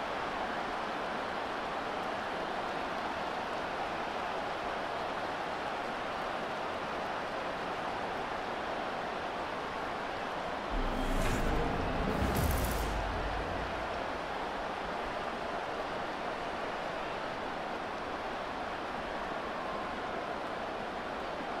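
A large crowd cheers and roars steadily in a big stadium.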